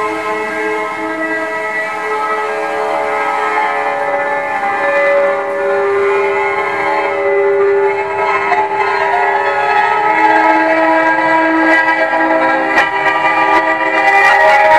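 A piano is played with ringing, sustained notes.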